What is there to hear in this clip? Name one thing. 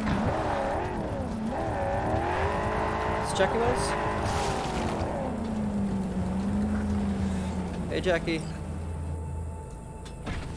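A car engine roars as a vehicle drives along.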